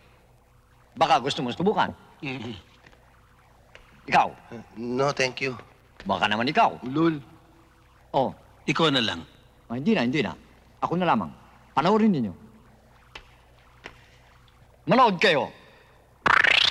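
A middle-aged man speaks calmly and explains, close by.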